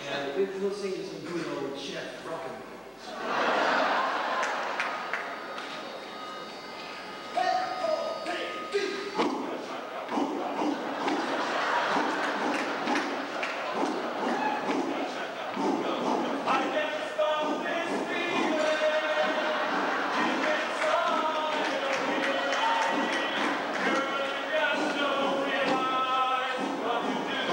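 A large choir of men and women sings together in an echoing hall.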